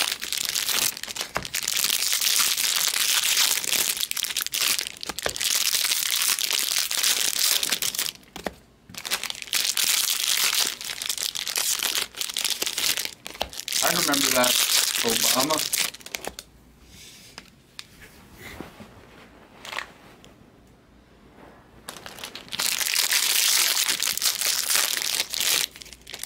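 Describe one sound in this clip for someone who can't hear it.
Foil card packs rustle and crinkle as they are shuffled by hand.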